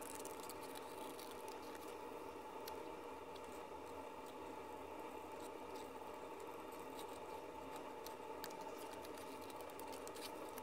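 Scissors snip through paper in short cuts.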